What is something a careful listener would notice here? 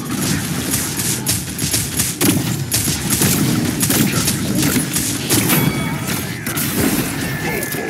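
Pistols fire in rapid bursts of gunshots.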